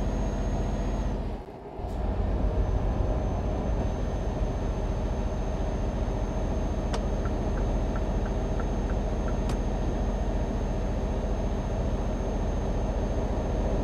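A truck engine hums steadily in a low drone.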